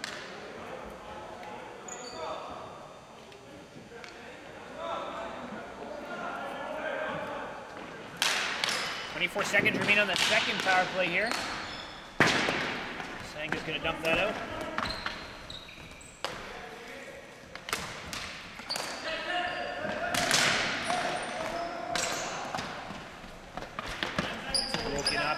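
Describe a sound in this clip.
Hockey sticks clack and slap against a ball on a hard floor in a large echoing hall.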